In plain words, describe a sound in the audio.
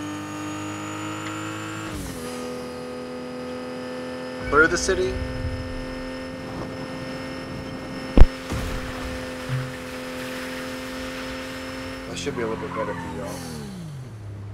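A car engine hums steadily, dropping in pitch now and then.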